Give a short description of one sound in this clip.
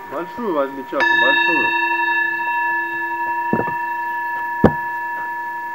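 A mallet strikes a metal singing bowl.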